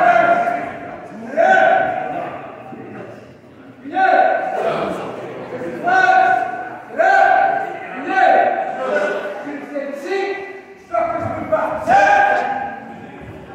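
Young children give sharp martial arts shouts in a large echoing hall.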